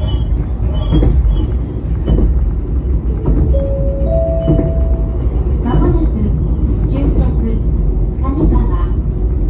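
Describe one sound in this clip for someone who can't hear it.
A train's engine rumbles steadily as it runs along the track.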